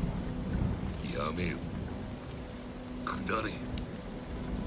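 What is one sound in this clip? A man speaks in a deep, gruff, menacing voice.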